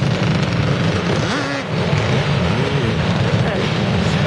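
Small motorbike engines buzz and rev nearby.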